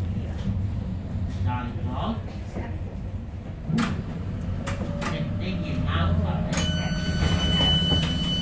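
Wheels clack over rail joints beneath a light rail car.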